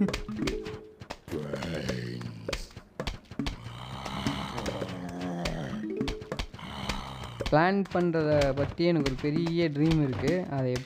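Small pops sound as plants fire peas in quick succession.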